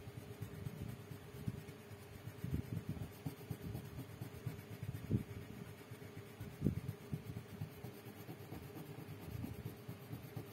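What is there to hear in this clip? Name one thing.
A crayon scratches rapidly back and forth on paper.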